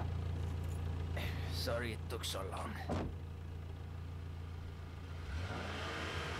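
A car engine rumbles up close as a vehicle drives over rough ground.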